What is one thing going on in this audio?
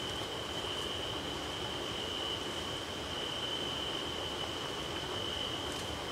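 Leaves and grass rustle as a man moves through them.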